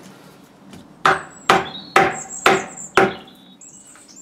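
A wooden mallet strikes a metal chisel in a steady series of sharp knocks.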